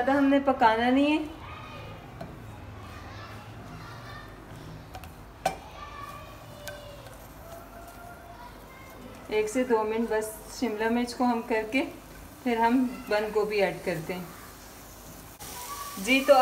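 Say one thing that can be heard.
A silicone spatula stirs green pepper strips in a frying pan.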